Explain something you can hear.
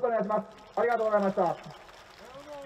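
A man speaks loudly into a microphone over a loudspeaker, outdoors.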